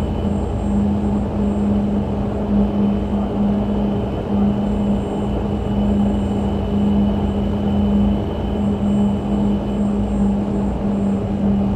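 Propeller engines drone steadily.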